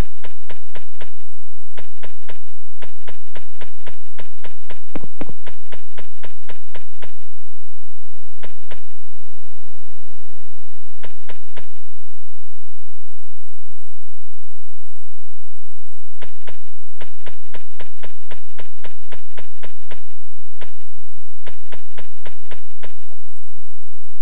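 Quick footsteps patter on hard ground and grass.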